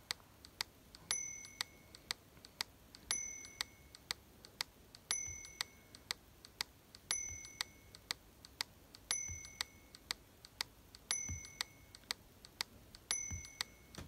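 A game plays a steady metronome of quick clicks, with a ringing beep on every fourth beat.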